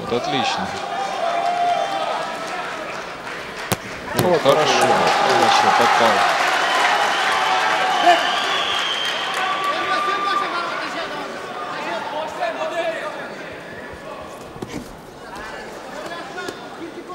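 A crowd cheers and roars in a large echoing hall.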